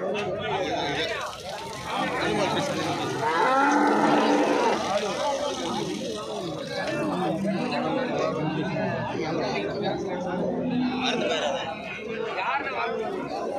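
A crowd of men chatter loudly all around, outdoors.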